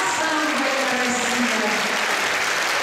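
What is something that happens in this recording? A woman sings a long, high held note in an echoing hall.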